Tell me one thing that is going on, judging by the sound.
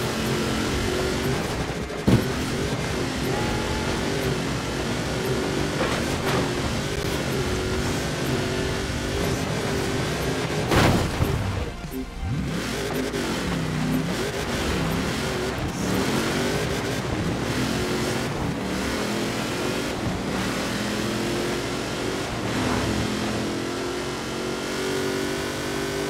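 An engine roars and revs up and down throughout.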